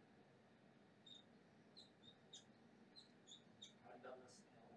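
A marker squeaks and taps against a whiteboard.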